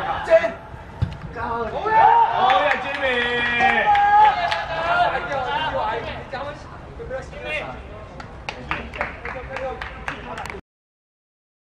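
Young men cheer and shout outdoors.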